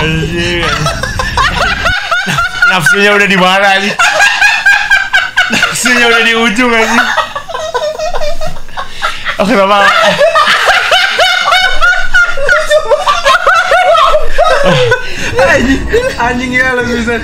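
Several young men laugh loudly and shriek close to a microphone.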